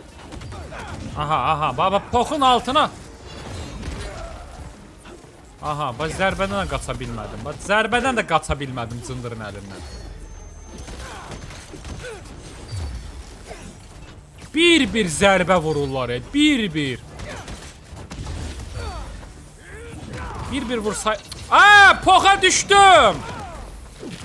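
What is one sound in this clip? A beast snarls and shrieks during a fight.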